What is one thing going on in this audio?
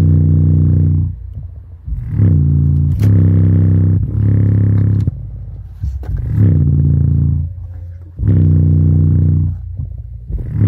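A loudspeaker plays loud, deep bass notes in pulsing bursts.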